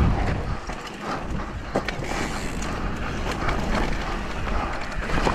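Bike tyres crunch and rattle over a rough dirt trail.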